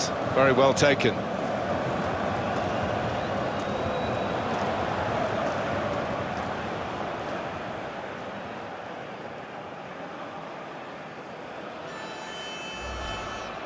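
A large stadium crowd roars and cheers, then slowly quietens.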